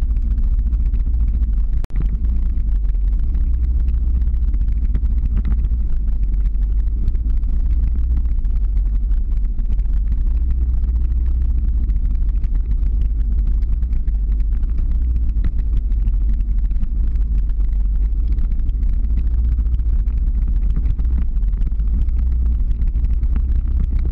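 Skateboard wheels roll steadily on asphalt.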